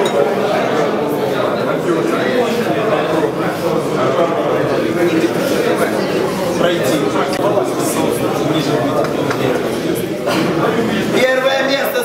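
A crowd of people chatters loudly in a room.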